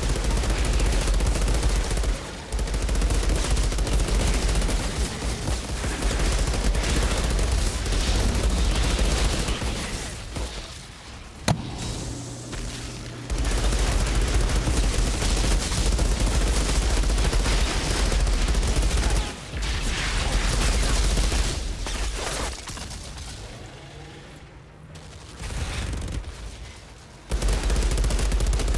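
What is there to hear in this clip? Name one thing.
Guns fire in rapid, loud bursts.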